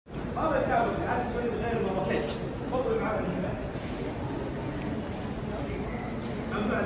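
Voices of a crowd murmur in a large echoing hall.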